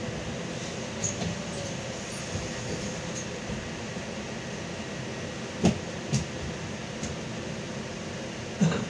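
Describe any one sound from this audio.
A bus body rattles and knocks over bumps.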